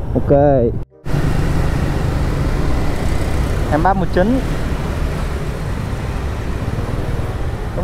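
A motorbike engine hums steadily while riding through traffic.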